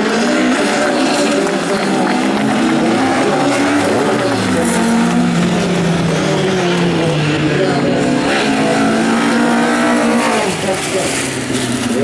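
Tyres skid and spray gravel on a loose track.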